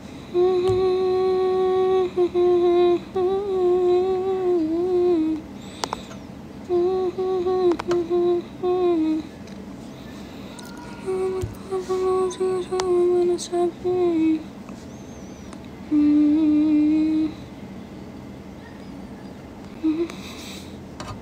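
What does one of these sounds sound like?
A young woman hums a short tune close by.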